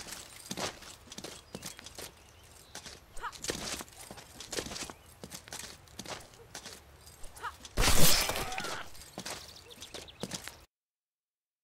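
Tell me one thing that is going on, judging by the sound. Swords clash and clink sharply in a duel.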